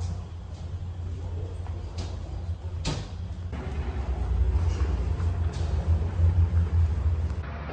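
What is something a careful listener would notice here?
A low engine rumble hums steadily.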